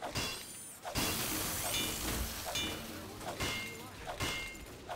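A wrench clangs repeatedly against a metal machine.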